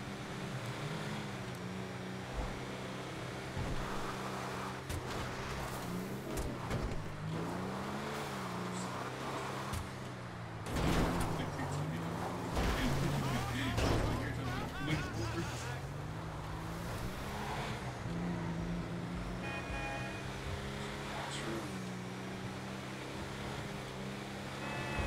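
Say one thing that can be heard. A car engine hums steadily and revs as the car drives.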